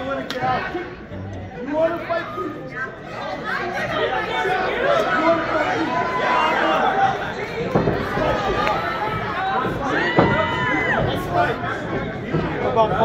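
A crowd of men and women chatters and shouts in a large echoing hall.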